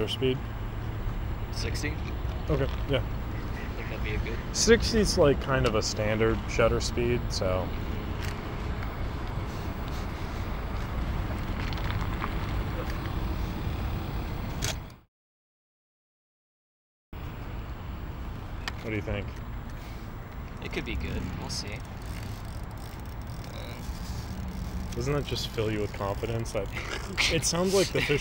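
A young man talks calmly close to the microphone.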